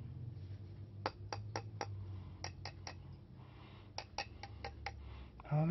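A knife blade taps lightly against a plastic bulb.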